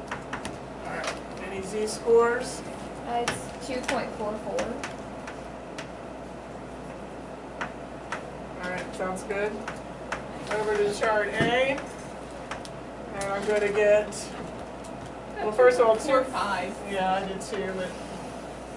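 A woman speaks calmly, explaining, close by.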